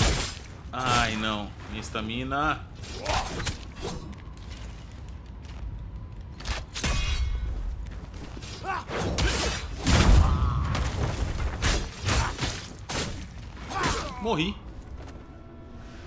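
Swords clash and strike in quick, sharp blows.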